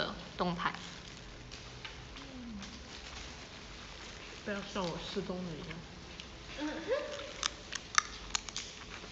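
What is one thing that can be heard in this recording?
A young woman bites and chews crunchy food close by.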